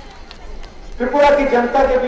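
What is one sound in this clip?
A man speaks forcefully into a microphone over a loudspeaker.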